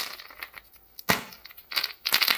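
A plastic capsule snaps open with a click.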